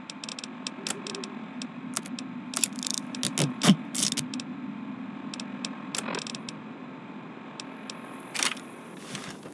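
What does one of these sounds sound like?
Menu selections click and beep in quick succession.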